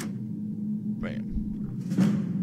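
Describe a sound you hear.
A lock snaps open with a loud metallic clunk.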